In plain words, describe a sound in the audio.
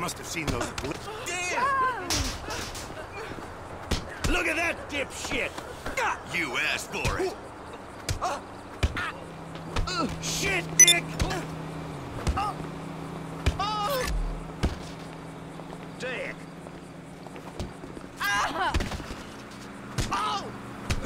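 Men shout and talk with animation over a voice chat.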